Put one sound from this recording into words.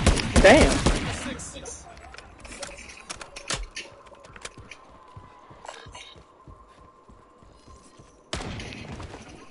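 Gunshots boom in quick bursts.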